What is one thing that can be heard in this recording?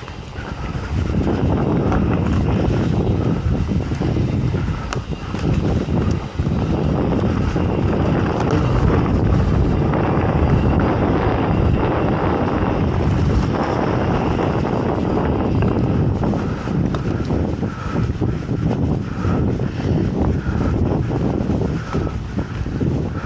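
Wind rushes over the microphone of a moving bike.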